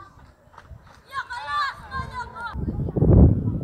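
A boy shouts out loudly across an open field.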